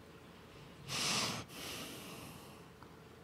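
A man sips a drink close to a microphone.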